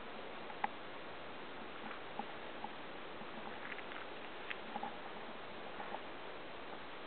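Leafy plants rustle and twigs snap as someone pushes through thick undergrowth.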